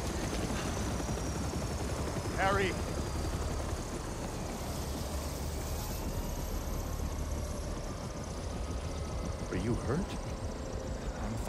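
A helicopter engine hums with rotors turning.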